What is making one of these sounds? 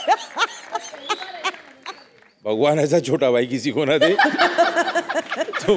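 A woman laughs heartily.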